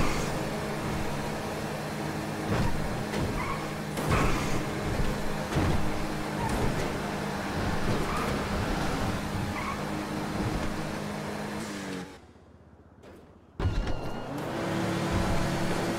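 A car engine drones steadily, rising and falling as it speeds along.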